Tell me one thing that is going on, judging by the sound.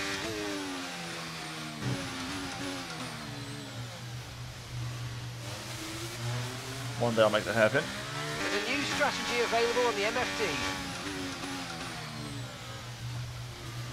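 A racing car engine drones and shifts pitch as it speeds along.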